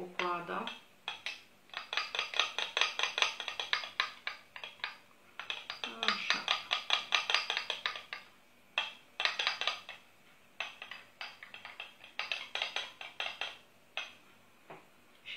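A spoon whisks rapidly against a small bowl.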